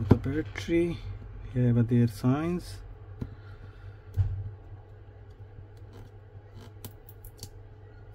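Fingers press and scrape against a phone's battery with faint clicks.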